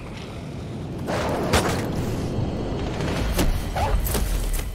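A wolf snarls and growls fiercely up close.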